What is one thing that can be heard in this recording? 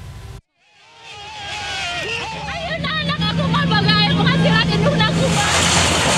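A woman shouts angrily up close.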